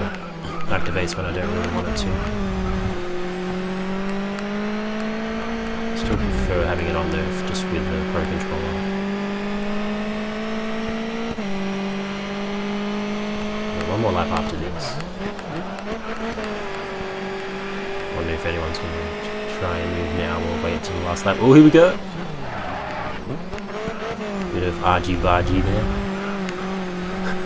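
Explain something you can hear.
A racing car engine roars steadily, rising in pitch through each gear and dropping at each shift.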